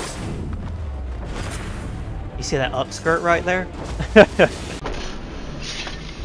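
Blows thud and clash in a scuffle.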